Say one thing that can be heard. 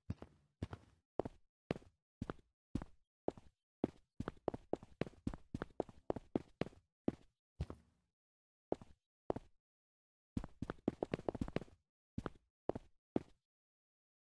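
Footsteps tap on a hard tiled floor, echoing slightly.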